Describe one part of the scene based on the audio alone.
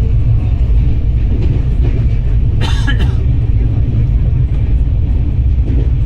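A train rushes past close by with a loud, steady rumble.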